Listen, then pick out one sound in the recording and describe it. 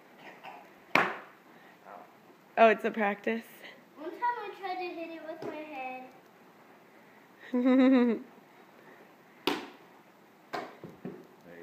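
A plastic board snaps sharply as a boy kicks and punches it.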